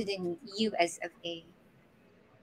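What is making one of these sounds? A woman talks with animation through a microphone.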